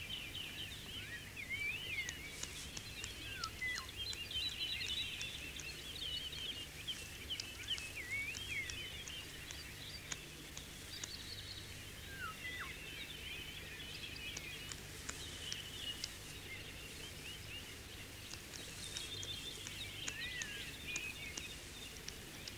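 A hawk tears at prey with its beak, with soft wet ripping sounds.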